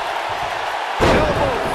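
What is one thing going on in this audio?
A wrestler's kick lands with a loud smack.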